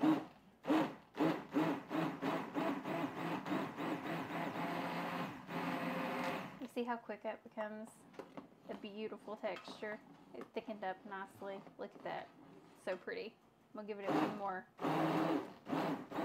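A hand blender whirs loudly as it purees soup in a pot.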